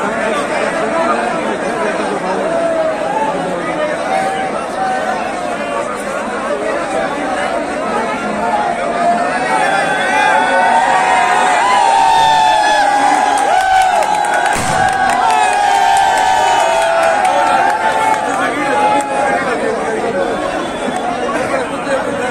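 A large crowd of men talks and shouts outdoors.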